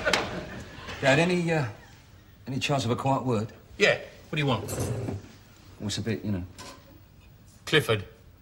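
A man talks firmly and close by.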